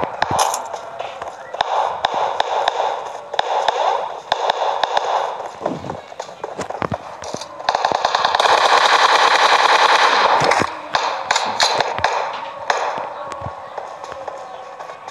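Footsteps crunch quickly over sand.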